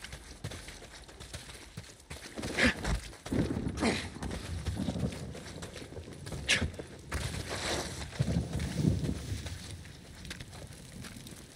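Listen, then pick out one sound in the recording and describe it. Footsteps rustle quickly through dry grass.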